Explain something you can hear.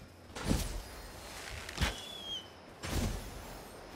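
A large bird screeches.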